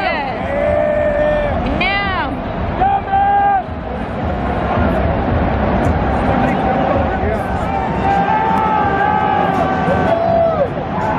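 A large stadium crowd roars and cheers throughout.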